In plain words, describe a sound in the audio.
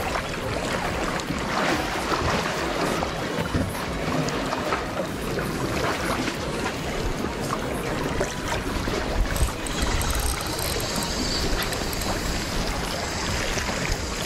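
A fishing reel clicks and whirs as it is wound.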